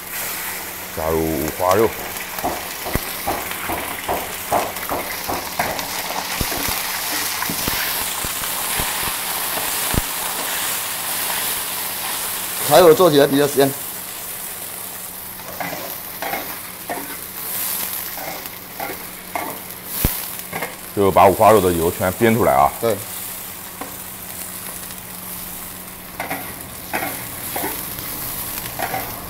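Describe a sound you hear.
Meat sizzles in hot oil in a wok.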